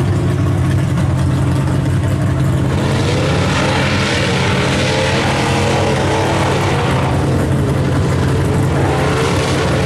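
Mud and water spray hard against a truck.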